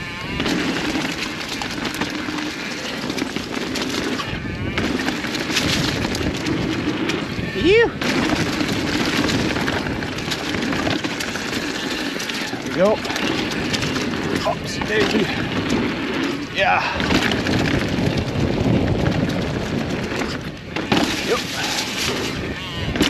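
A bicycle rattles over bumps and wooden boards.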